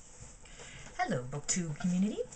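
A young woman speaks calmly, close to a microphone.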